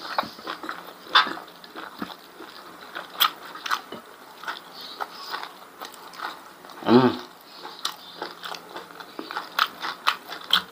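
A man chews with wet, smacking mouth sounds close to the microphone.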